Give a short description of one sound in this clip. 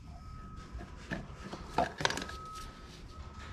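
A metal tool clicks and clanks against an engine.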